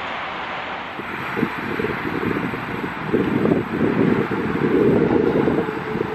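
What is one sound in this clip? A tram approaches, rumbling louder as it nears.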